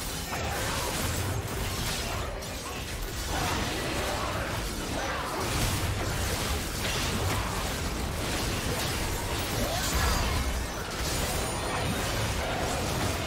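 Game spell effects whoosh and crackle in quick succession.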